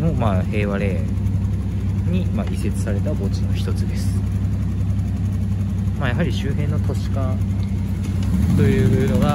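A motorcycle engine idles close by with a low, steady rumble.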